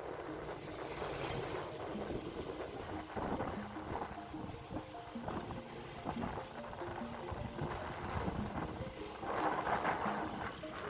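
Wind rushes and buffets steadily outdoors.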